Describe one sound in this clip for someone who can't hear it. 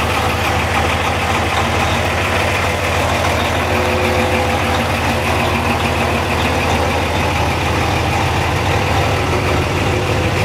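A large truck engine rumbles steadily at idle nearby.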